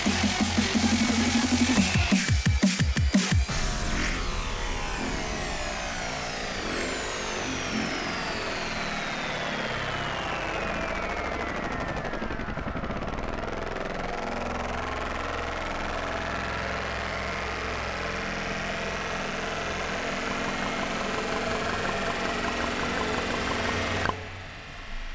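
Loud, fast electronic music plays, then cuts off abruptly.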